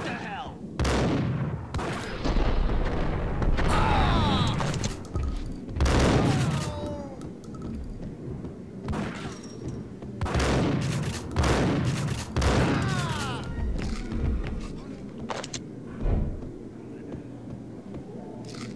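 Footsteps thud quickly on a carpeted floor.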